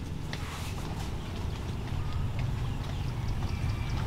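A woman walks with soft footsteps on a path outdoors.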